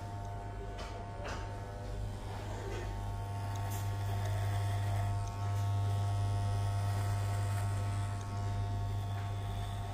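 Electric hair clippers buzz steadily up close.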